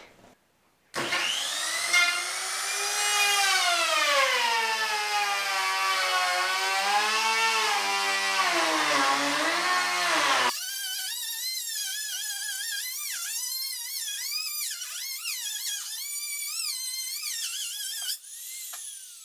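A handheld router whines loudly as it cuts along the edge of a board, its pitch rising and falling.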